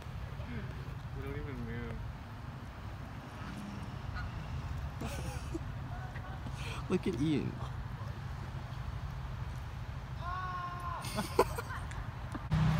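Geese honk nearby.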